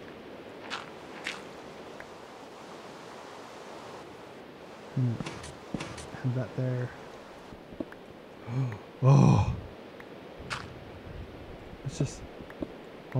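A pickaxe chips and breaks stone blocks with short crunching knocks.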